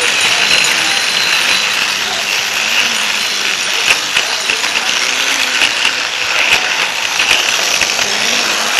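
Toy train wheels click and rattle over plastic track joints.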